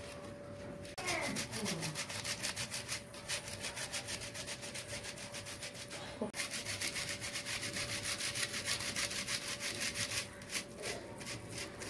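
A plastic sieve rattles in quick, steady strokes as flour is sifted through it.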